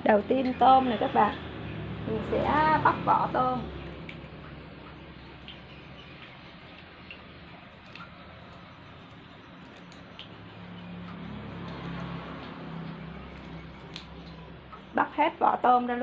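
Shrimp shells crackle softly as they are peeled by hand.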